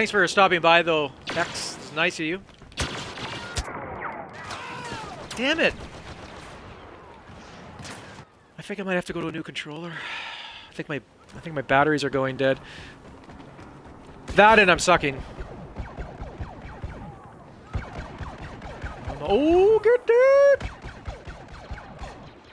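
Gunfire from a video game crackles in short bursts.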